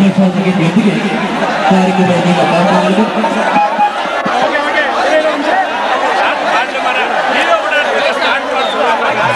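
A crowd of men chatters all around, close by.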